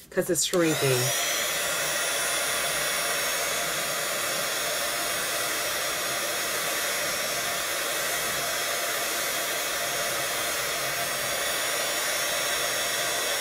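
A heat gun blows with a steady whooshing hum.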